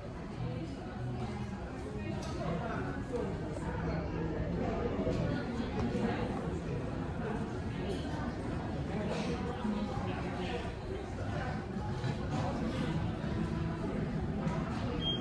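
A crowd of people chatters and murmurs in the background.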